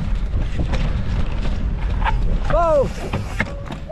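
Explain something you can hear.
A bicycle crashes down onto rocks with a clatter.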